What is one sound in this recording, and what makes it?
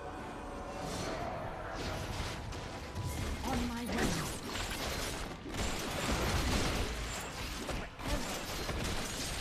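Game spell effects whoosh and crackle in a fast fight.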